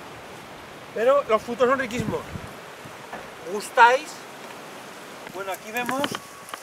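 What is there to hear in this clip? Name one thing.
An older man speaks calmly outdoors, close by.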